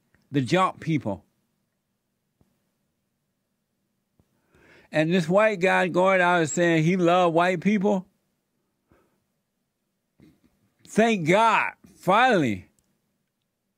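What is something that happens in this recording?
A man speaks expressively into a close microphone, in bursts with long pauses.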